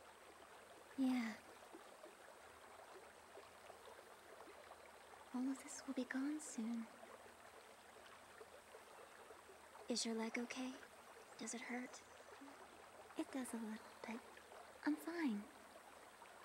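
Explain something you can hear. A young girl speaks softly in short phrases.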